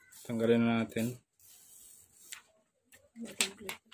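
Plastic film crinkles as it is peeled away.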